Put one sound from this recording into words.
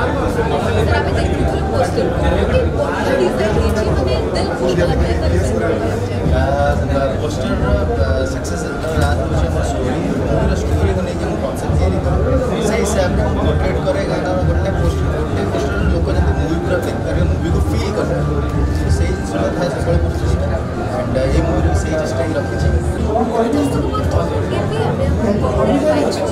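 A young woman asks questions into a microphone.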